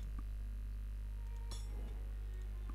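A hammer clangs on an anvil.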